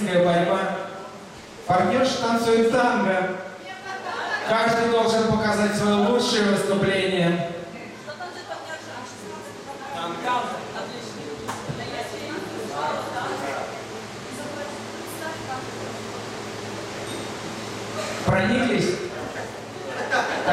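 A man speaks with animation in an echoing hall.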